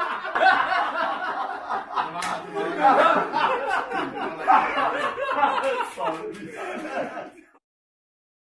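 Several men laugh loudly.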